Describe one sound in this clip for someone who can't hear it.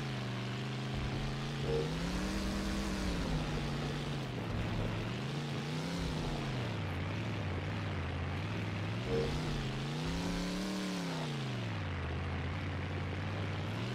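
A truck engine revs up and down, rising and falling in pitch.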